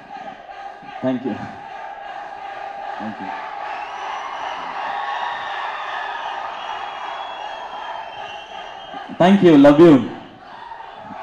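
A young man speaks through a microphone in a large echoing hall.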